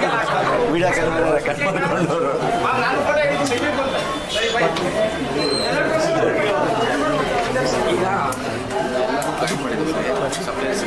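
A man talks cheerfully and laughs, close by.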